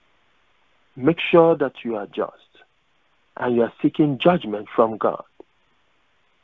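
A man speaks with emphasis, close to a microphone, in short bursts with pauses.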